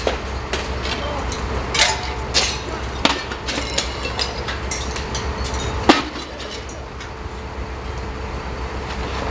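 A hammer smashes window glass, and shards tinkle and crash down.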